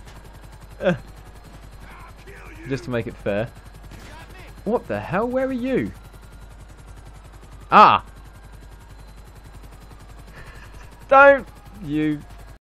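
A helicopter's rotor chops steadily.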